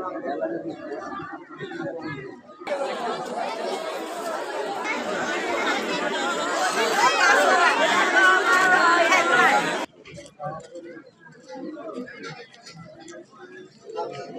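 A crowd of people murmurs outdoors.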